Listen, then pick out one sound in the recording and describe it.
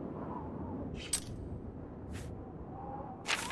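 Menu clicks sound sharply a few times.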